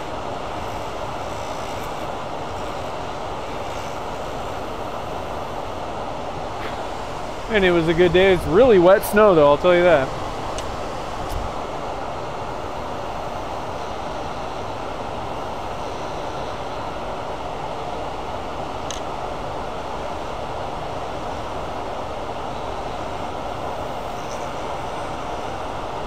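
A tool scrapes against a spinning workpiece.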